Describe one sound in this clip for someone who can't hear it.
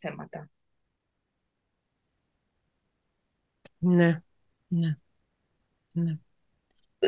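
A middle-aged woman speaks in short bursts over an online call.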